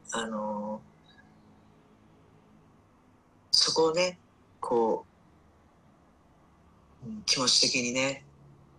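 An older woman speaks animatedly in short bursts, close to a microphone.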